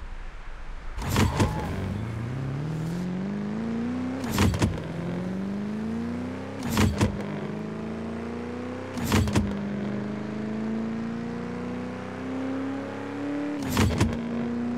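A car engine roars and climbs in pitch as it accelerates, with gear shifts.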